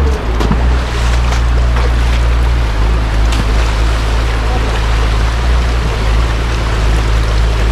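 Shallow water rushes and splashes over stones.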